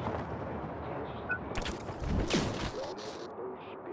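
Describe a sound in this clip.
Wind rushes past during a fast glide through the air.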